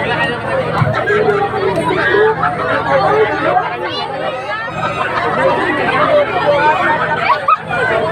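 A crowd of women and children chatter and shout nearby.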